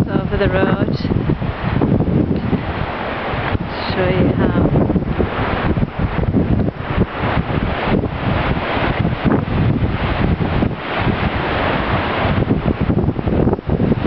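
A flooded river rushes and churns over rocks.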